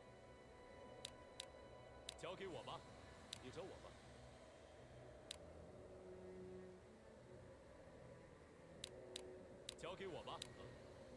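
Soft game menu clicks sound now and then.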